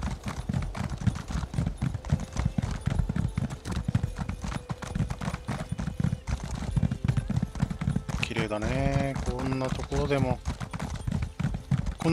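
Hooves pound steadily on the ground as a mount gallops.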